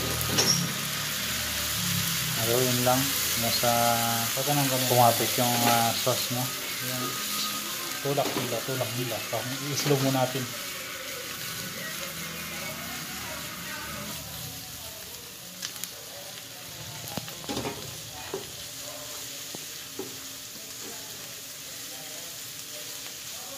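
A spatula scrapes and knocks against a metal pan.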